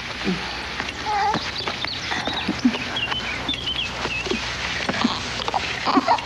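A baby babbles and coos.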